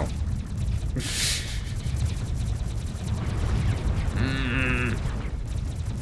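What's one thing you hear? A laser weapon fires with bright zapping bursts.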